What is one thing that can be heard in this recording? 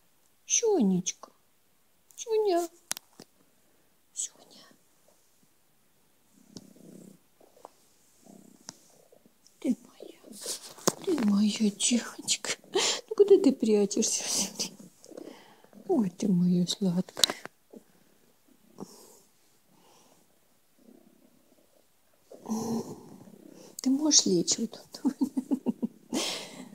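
A cat meows loudly and repeatedly, close by.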